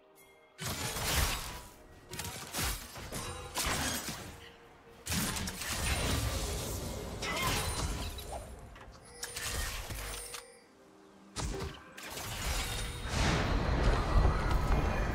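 Video game combat effects whoosh, crackle and thud in bursts.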